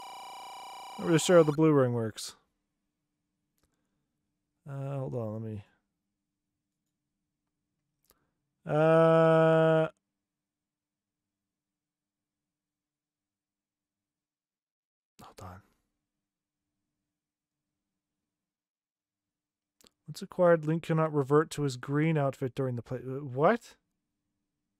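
A man talks into a close microphone, in short bursts with long pauses.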